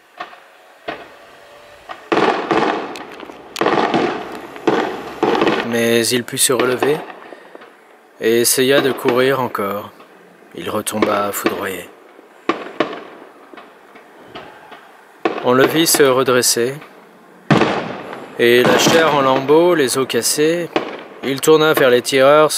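Fireworks bang in the distance.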